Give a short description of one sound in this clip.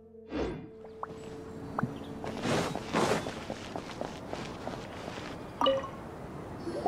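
Light footsteps patter quickly on stone.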